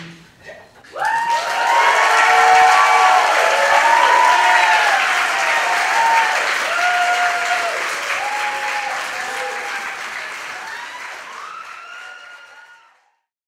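A vocal group sings long, held harmonies that slowly fade.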